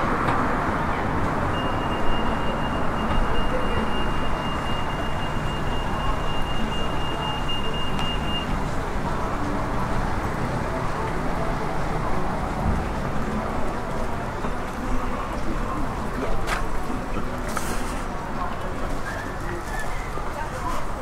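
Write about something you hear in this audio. Traffic rumbles steadily along a nearby street outdoors.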